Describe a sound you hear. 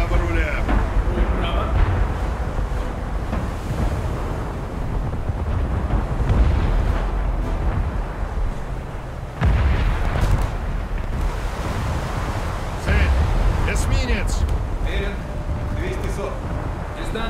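Water rushes and churns along a ship's hull.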